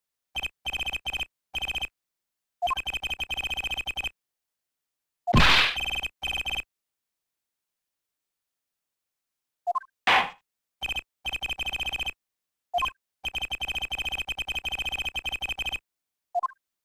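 Rapid electronic blips chirp as game dialogue text types out.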